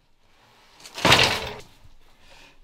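A body thuds heavily onto a wooden floor.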